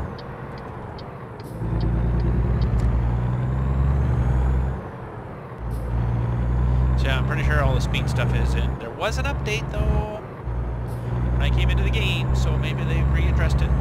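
A truck engine rumbles deeply, surging and easing off as it drives.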